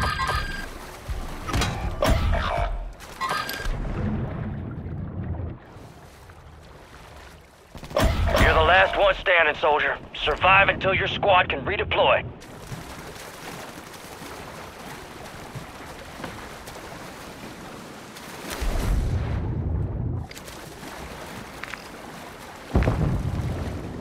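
Water splashes and sloshes as a swimmer strokes along the surface.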